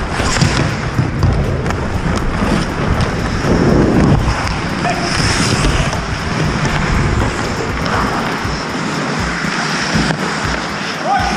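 Hockey sticks clack against the ice and a puck.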